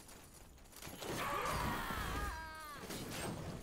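A fiery magic blast whooshes and crackles.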